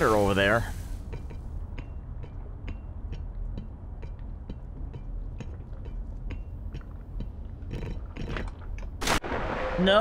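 Footsteps clank steadily on a metal ladder.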